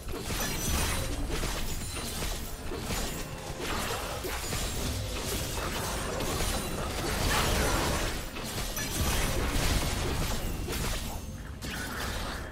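Magic spell effects whoosh and crash in a video game battle.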